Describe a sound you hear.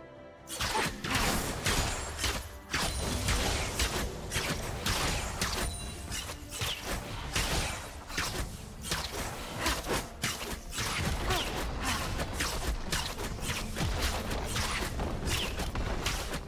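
Video game spell effects crackle, whoosh and boom.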